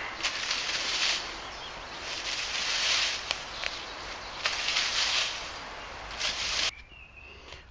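A branch drags through dry leaves with a rustling crunch.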